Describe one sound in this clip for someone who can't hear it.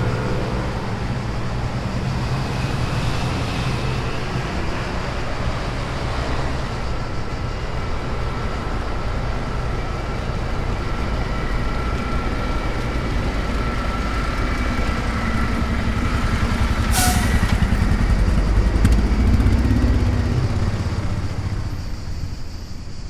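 Road traffic rumbles steadily outdoors.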